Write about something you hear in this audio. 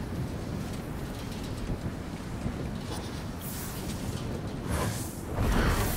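Wind blows hard and steadily.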